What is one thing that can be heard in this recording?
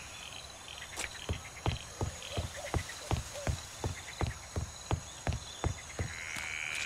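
Footsteps thud on wooden boards at a steady pace.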